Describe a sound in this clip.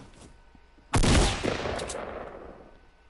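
A gun fires a quick burst of shots.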